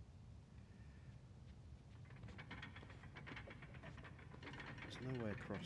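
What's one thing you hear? Heavy machinery gears turn with a low, steady rumble.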